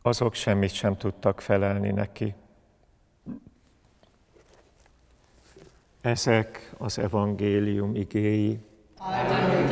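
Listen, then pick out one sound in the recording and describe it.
A middle-aged man chants through a microphone in a large echoing hall.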